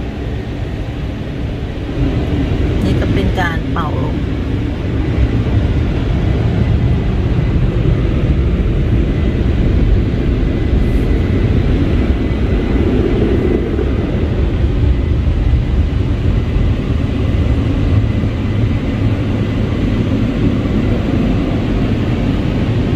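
Water sprays hard against a car and rushes steadily.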